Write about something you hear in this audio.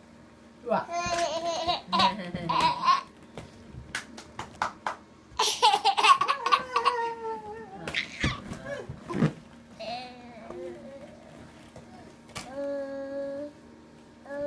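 A baby squeals and laughs close by.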